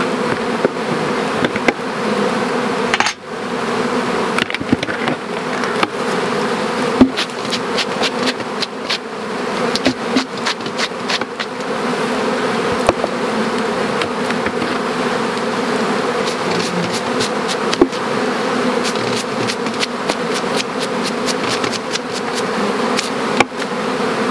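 A swarm of bees hums steadily close by.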